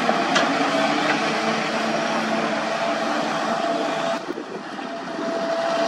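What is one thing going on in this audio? An excavator bucket scrapes and digs into rocky earth.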